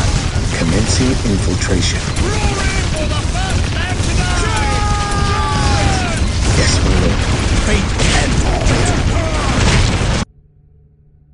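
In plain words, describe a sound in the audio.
Rapid gunfire crackles and rattles.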